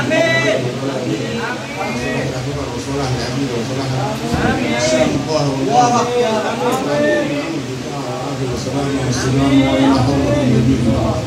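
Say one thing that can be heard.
A group of men sing along together.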